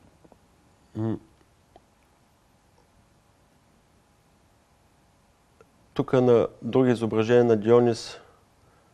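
A man speaks into a microphone, calmly and close by.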